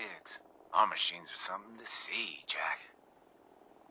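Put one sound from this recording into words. A man speaks calmly through a helmet radio.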